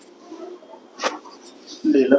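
A joint cracks sharply.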